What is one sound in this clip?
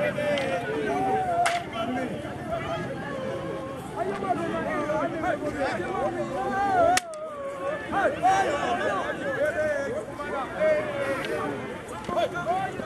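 A crowd of people shouts and chatters excitedly nearby, outdoors.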